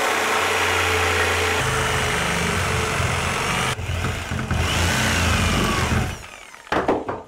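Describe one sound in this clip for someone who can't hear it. A power sander whirs loudly against a surface.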